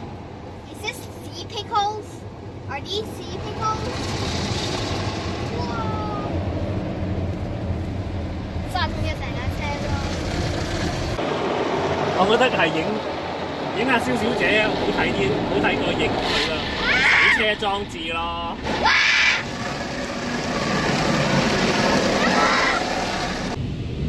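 Young girls talk excitedly close by.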